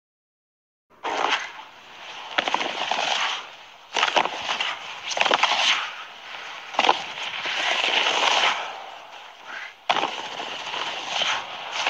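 A snowboard scrapes and hisses across hard snow in repeated bursts.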